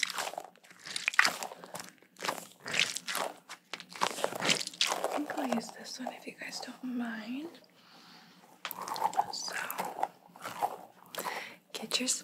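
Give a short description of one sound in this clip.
Squishy rubber balls crackle and squelch as hands squeeze them.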